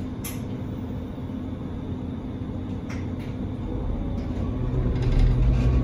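A train rumbles steadily along the tracks, growing louder.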